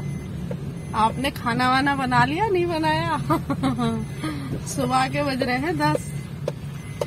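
A middle-aged woman talks cheerfully close by.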